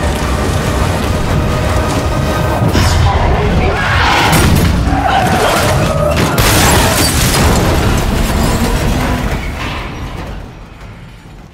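Heavy rain drums on a car's windows.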